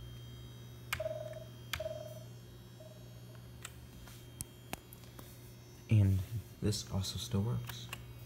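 Keyboard keys click.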